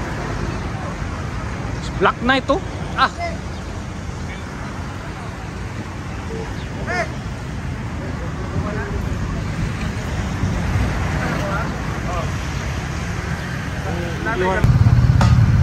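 A crowd of men chatter outdoors nearby.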